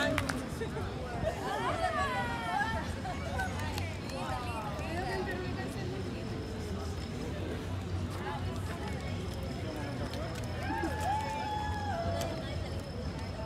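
Young people chat and call out.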